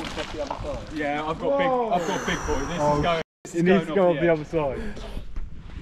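Young men shout and talk outdoors with animation.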